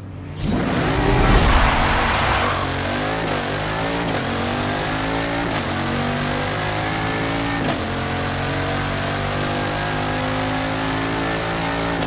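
A powerful car engine roars and climbs in pitch as it accelerates, with brief dips at each gear change.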